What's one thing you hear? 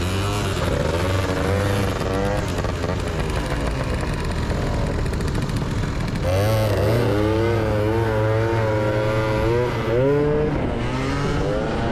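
A motorcycle engine idles and then revs up as it pulls away.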